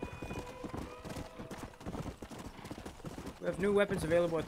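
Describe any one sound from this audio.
Horse hooves clop steadily on dry ground.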